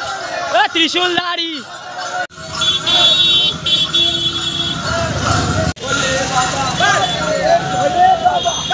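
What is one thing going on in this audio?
A crowd of men chants and shouts loudly outdoors.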